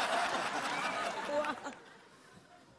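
A man laughs heartily.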